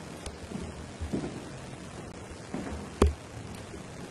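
Footsteps thud across a wooden floor.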